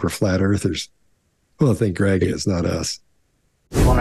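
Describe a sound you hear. Men talk with animation over an online call.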